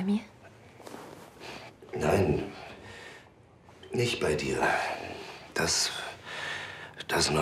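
A man speaks quietly and earnestly close by.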